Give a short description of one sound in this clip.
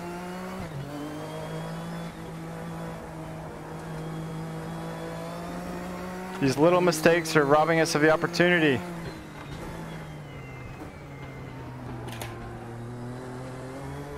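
A racing car engine drones steadily, shifting pitch as it changes gear.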